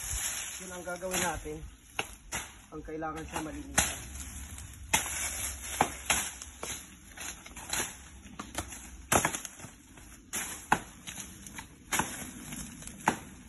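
Dry leaves and brush rustle and crackle underfoot.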